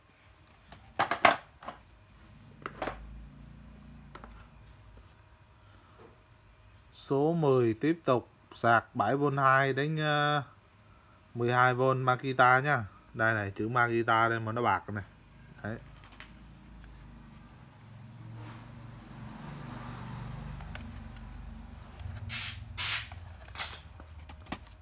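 A plastic case knocks and rattles as it is handled.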